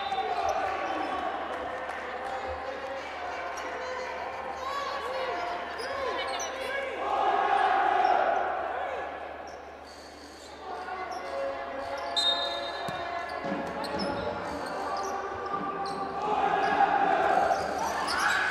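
A crowd cheers and chatters in a large echoing arena.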